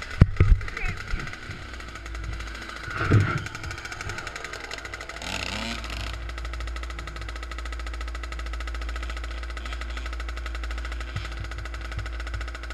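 A dirt bike engine idles with a steady, buzzing rumble close by.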